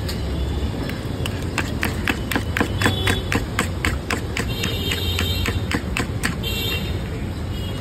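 A fork whisks eggs rapidly against a bowl, clicking fast.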